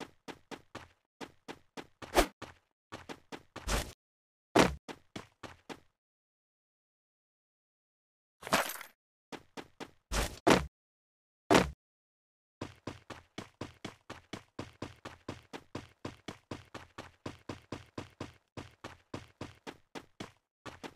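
Quick, even footsteps patter on hard ground and sand.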